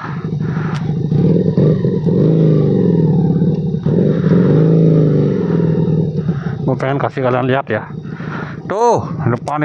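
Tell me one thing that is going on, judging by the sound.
A motorcycle engine rumbles steadily, rising and falling in pitch.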